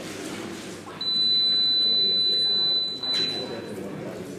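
A fencing scoring box sounds a steady electronic tone.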